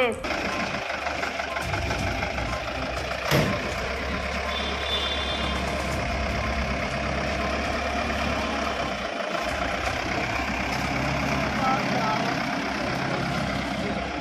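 A van's engine idles with a low rumble.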